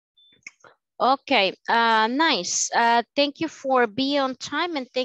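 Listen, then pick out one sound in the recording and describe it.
A young woman speaks with animation through an online call.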